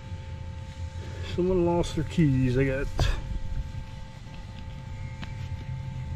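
Gloved hands crumble and rustle soil and grass.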